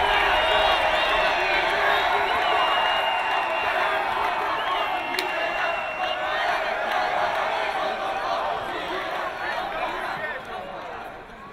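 A large crowd cheers and shouts loudly in an echoing hall, then quiets down.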